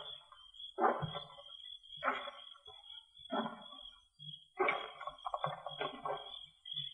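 An old radio plays with a thin, muffled sound.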